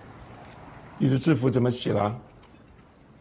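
A man asks a question calmly.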